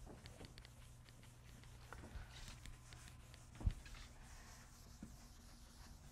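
A person wipes a chalkboard with an eraser, rubbing and swishing.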